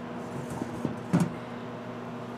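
A metal lid clanks open.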